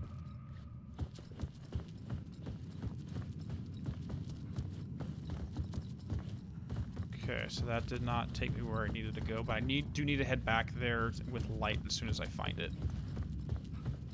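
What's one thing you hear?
Footsteps crunch steadily on gravel and wooden railway sleepers.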